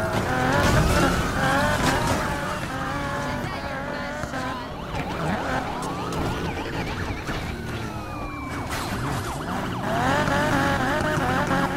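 Police sirens wail nearby.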